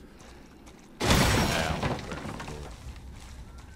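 A pistol fires a loud shot that echoes and fades.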